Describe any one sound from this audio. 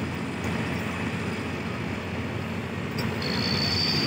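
A forklift engine hums nearby.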